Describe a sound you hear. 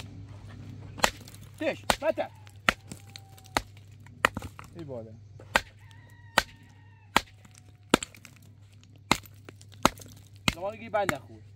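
A hammer strikes rock with sharp, ringing blows.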